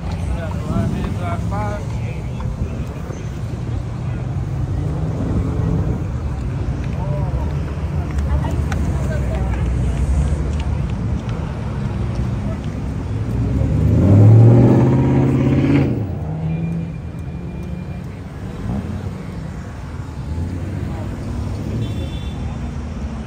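Car engines rumble and rev as cars drive slowly past outdoors.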